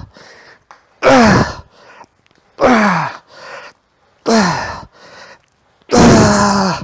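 A man groans with strain, louder toward the end.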